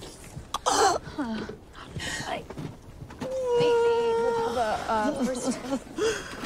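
A woman cries out in pain.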